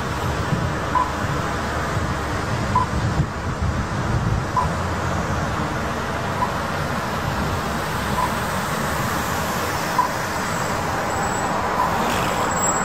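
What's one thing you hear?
A pedestrian crossing signal beeps at a slow, steady pace.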